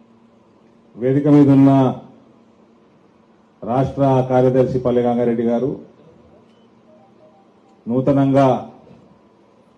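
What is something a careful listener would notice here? A man speaks loudly into a microphone through loudspeakers, in short forceful bursts.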